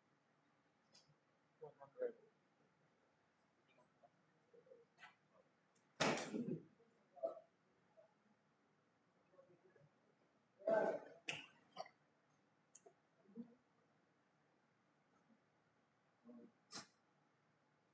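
Darts thud into a bristle dartboard.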